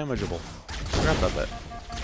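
An energy weapon fires with a loud crackling blast.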